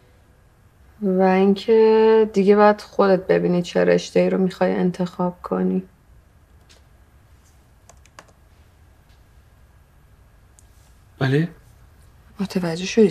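A woman speaks earnestly nearby, in pauses.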